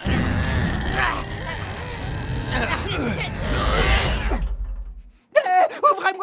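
A cartoon brawl crashes and clatters noisily.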